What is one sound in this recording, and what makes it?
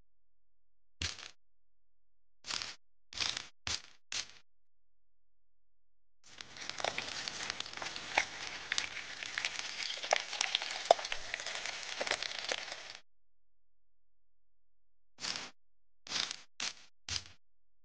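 Soft taps as a small sponge cake is pressed into place.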